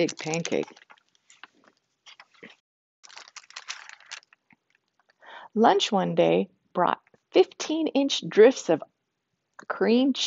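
A woman speaks calmly and clearly close by, as if reading aloud.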